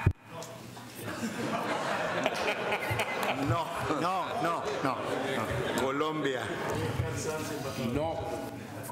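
A man speaks steadily through a microphone, heard over loudspeakers in a large hall.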